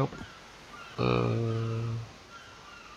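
A bird clucks and squawks close by.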